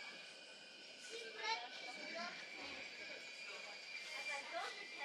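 Men and women in a crowd talk quietly nearby.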